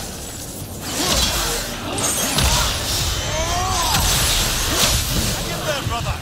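Fiery sparks crackle and burst in a struggle.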